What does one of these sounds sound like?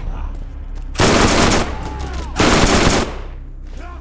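An automatic gun fires in loud bursts.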